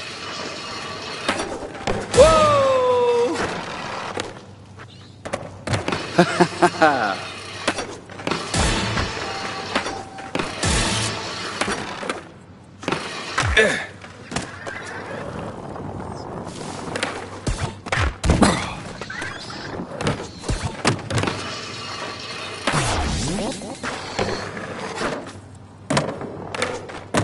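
Skateboard wheels roll and grind along rails and ledges.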